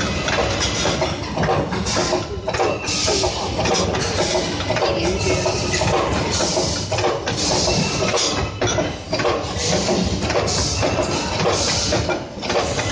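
Metal tubes clatter and rattle against each other.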